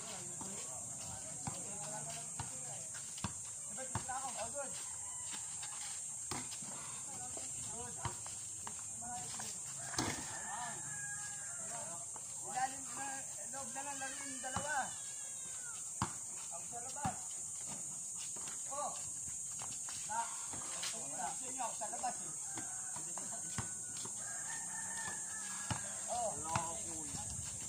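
Children shout and call out to each other outdoors at a distance.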